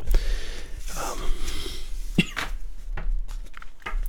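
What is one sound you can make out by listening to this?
A card drops onto a wooden table with a light slap.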